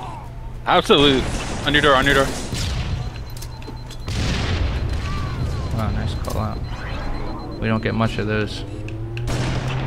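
Rifle shots crack out now and then.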